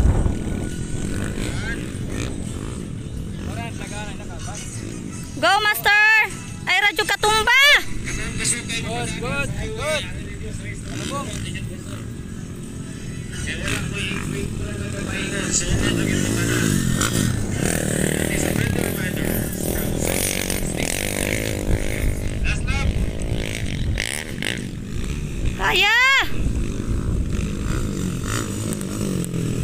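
Dirt bike engines rev and whine, rising and falling in pitch.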